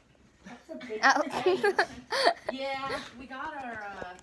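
A young girl laughs loudly.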